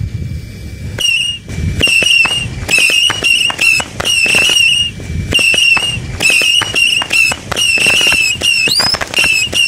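Fireworks launch one after another with sharp pops.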